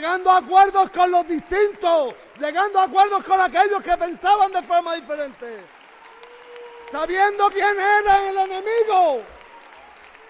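A man shouts passionately through a microphone in a large echoing hall.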